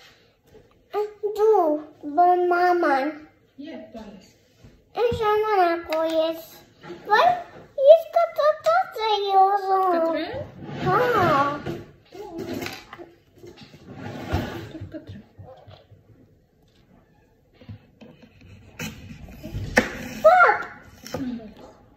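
A young girl talks close by in a high, lively voice.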